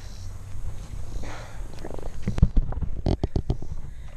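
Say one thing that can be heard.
A fish splashes briefly in shallow water.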